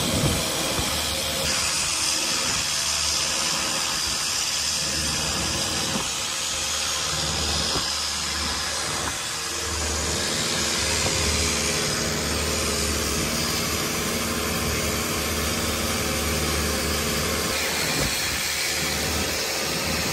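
A boat engine drones loudly and steadily.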